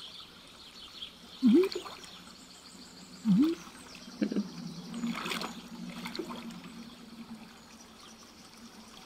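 A fishing float bobs on water with soft plops.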